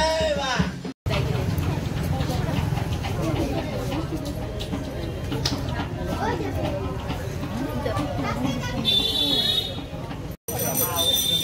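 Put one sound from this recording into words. A crowd of people murmurs and chatters.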